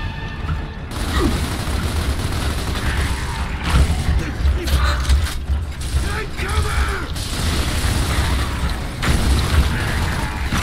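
A heavy rifle fires rapid bursts of loud shots.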